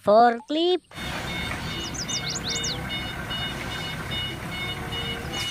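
A forklift engine runs.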